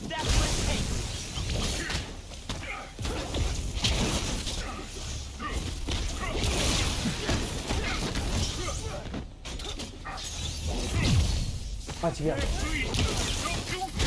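Punches and blows thud in a fight.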